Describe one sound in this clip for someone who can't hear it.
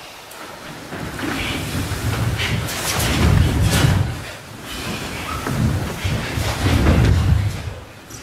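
A group of bare feet stamps and slides on a wooden floor in a large hall.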